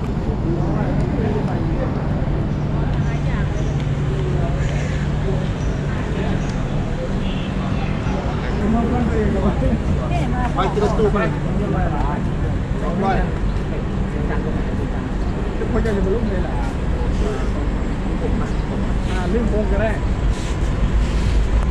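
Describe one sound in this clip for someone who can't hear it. A crowd murmurs in an open, echoing space.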